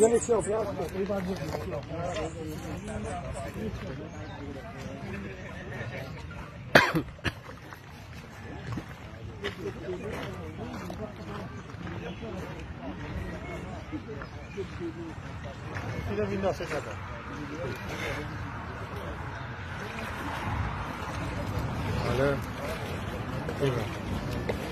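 Small waves lap against rocks at the shore.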